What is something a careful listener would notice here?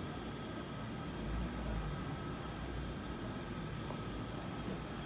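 Fabric rustles softly as hands fold it.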